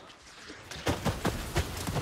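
Flames burst with a loud whoosh.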